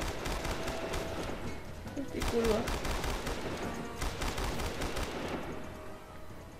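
A heavy machine gun fires in long, rapid bursts.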